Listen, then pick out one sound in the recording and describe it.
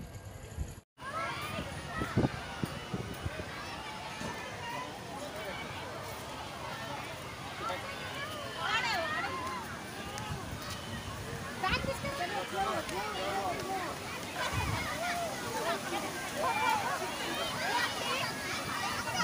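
A crowd of people chatter and shout outdoors.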